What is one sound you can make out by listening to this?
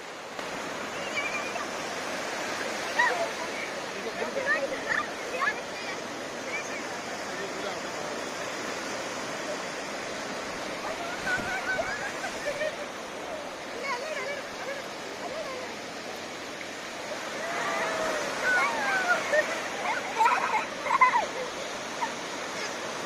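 Children shout and squeal excitedly close by.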